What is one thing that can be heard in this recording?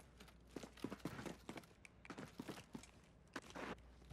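Footsteps land with a thud after a drop.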